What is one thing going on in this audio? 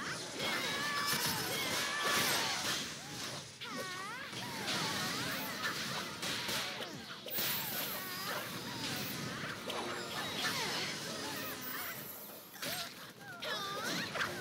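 Magic spells burst and whoosh in a busy fight.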